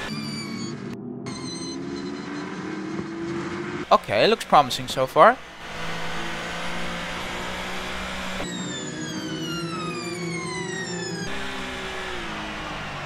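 A racing car engine roars at high revs, its pitch rising and falling as it shifts gears.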